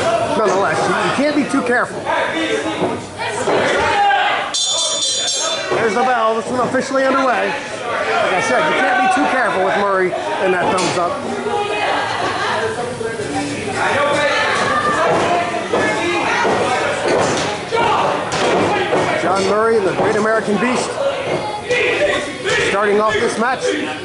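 A crowd talks and shouts in a noisy echoing hall.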